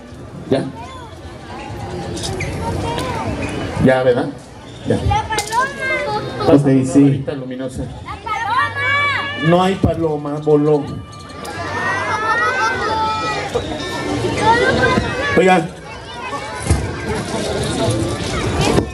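A crowd of children and adults murmurs and laughs nearby.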